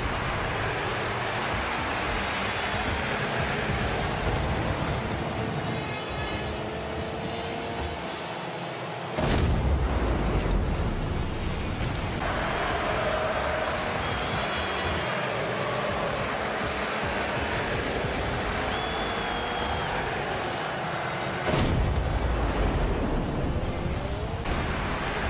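A video game car engine hums and boosts with a rushing roar.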